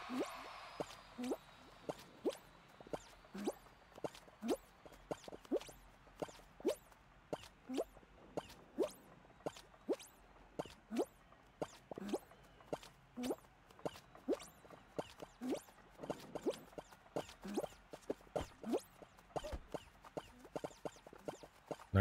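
Short bright game pops sound quickly, one after another.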